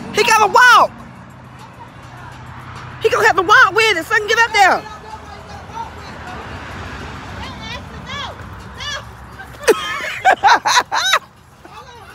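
A woman talks excitedly close by.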